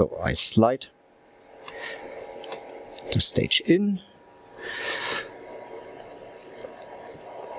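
Metal parts click and clatter as they are handled.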